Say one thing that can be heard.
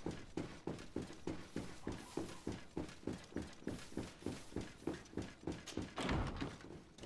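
Quick footsteps thud on a hard floor in an echoing hall.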